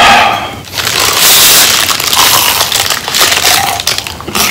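A wrapper crinkles and rustles.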